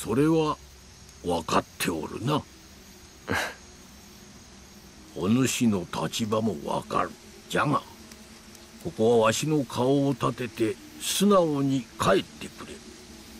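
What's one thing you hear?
An elderly man speaks sternly nearby.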